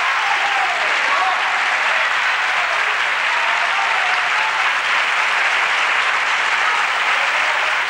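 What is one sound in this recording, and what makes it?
A large audience applauds loudly and steadily.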